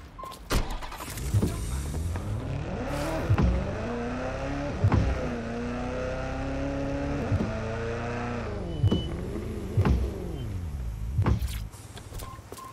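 A car engine revs and whines as the car speeds along.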